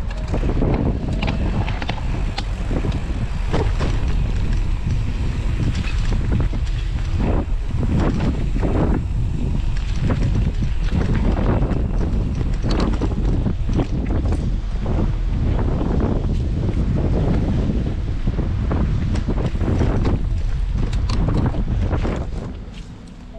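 Wind rushes loudly past.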